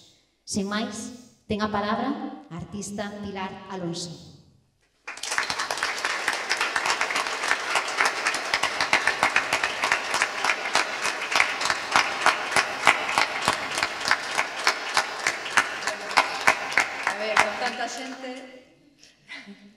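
A woman speaks into a microphone to an audience.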